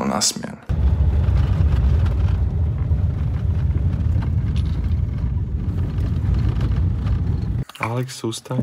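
A car's tyres crunch steadily over a gravel road.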